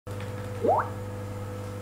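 A computer notification chime rings out briefly.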